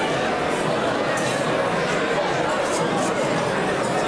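A crowd of diners chatters in a large echoing hall.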